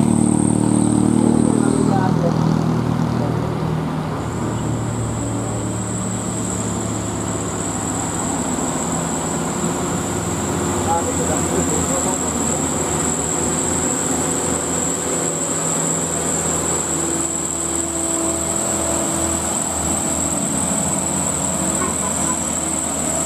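A laden diesel dump truck labours uphill under load.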